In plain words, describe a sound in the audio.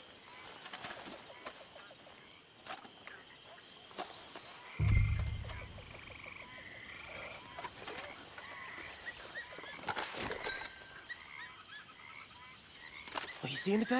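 Footsteps rustle softly through grass and brush.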